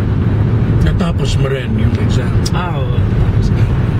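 A man talks close by, with animation.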